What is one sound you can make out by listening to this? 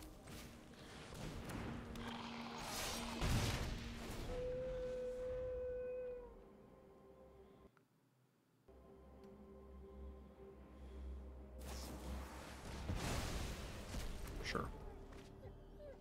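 Game sound effects chime and swoosh as cards are played.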